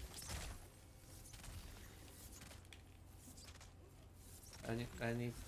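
A magic spell crackles and whooshes in a video game.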